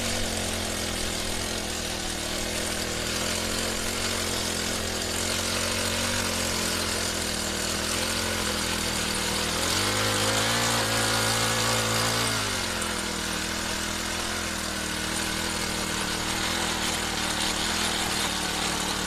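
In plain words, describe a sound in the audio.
A small tiller engine runs steadily, briefly revving higher.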